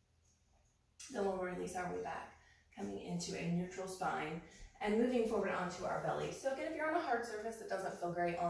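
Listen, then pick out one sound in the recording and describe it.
A woman speaks calmly and clearly into a nearby microphone.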